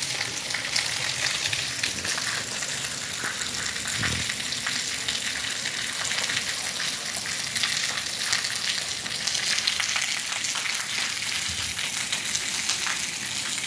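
Small children's bare feet slap on wet paving.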